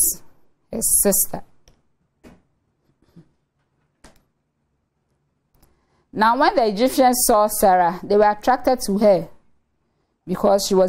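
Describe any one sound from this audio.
A young woman speaks calmly into a microphone, explaining at a teaching pace.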